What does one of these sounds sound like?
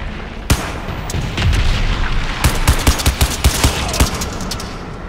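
A rifle fires loud shots in short bursts.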